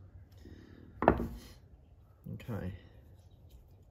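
Metal parts click and knock as they are handled.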